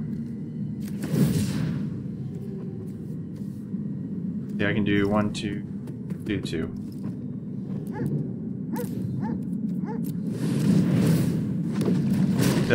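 A magical whoosh sounds as a card is played.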